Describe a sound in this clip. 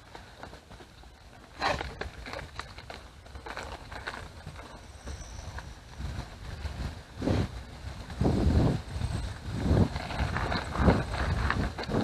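Wind rushes past loudly as a bike picks up speed.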